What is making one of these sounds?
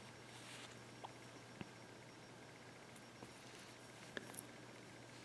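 Small glass beads click softly against each other.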